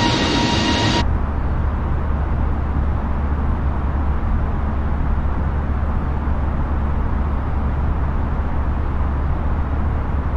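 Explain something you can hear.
A low, steady hum drones.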